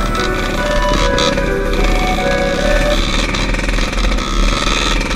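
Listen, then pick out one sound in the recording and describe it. Another dirt bike engine buzzes a little way ahead.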